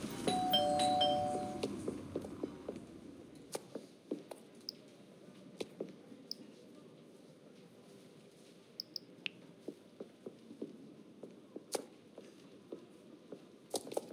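A horse's hooves clop on cobblestones.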